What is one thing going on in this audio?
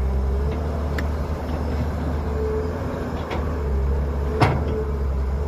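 Metal clanks sharply from an excavator bucket.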